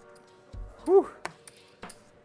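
Poker chips click and clatter together.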